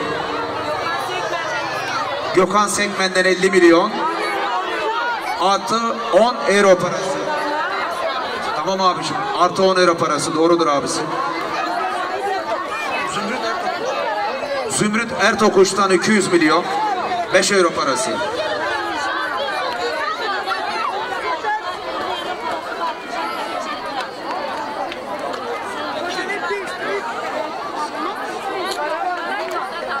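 A crowd of people chatters outdoors in the background.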